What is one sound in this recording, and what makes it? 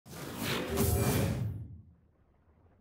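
A game console plays a swelling startup chime that fades away.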